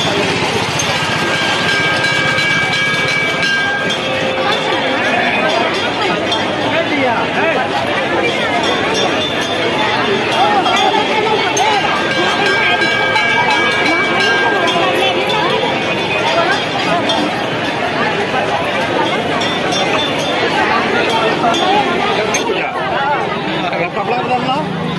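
A large crowd chatters loudly all around, outdoors.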